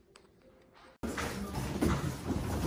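A crowd of people chatters indoors.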